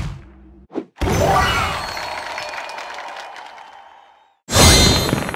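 A short victory jingle plays and fades out.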